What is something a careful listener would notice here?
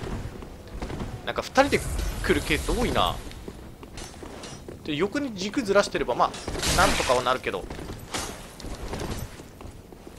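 Armoured footsteps clatter on stone steps.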